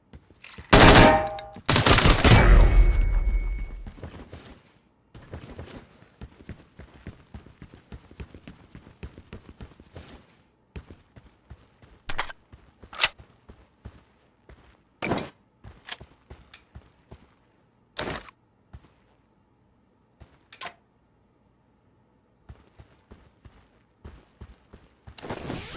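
Footsteps thud on hard ground as a soldier runs.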